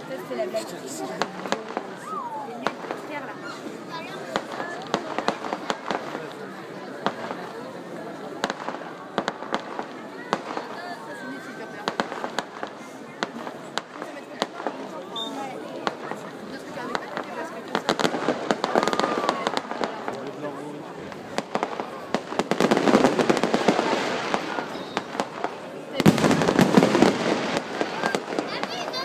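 Fireworks fizz and crackle outdoors.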